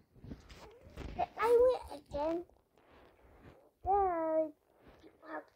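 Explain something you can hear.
A young girl talks with animation close to a microphone.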